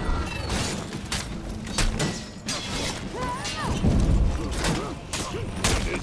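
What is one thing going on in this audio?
Swords clash and ring in a fight.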